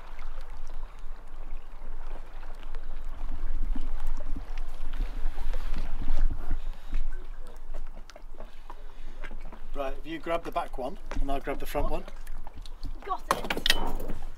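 Water laps gently against boat hulls.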